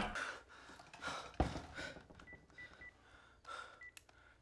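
A young man cries out in a strained voice.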